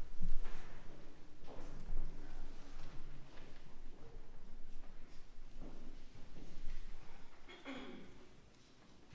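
People murmur quietly nearby in a large echoing hall.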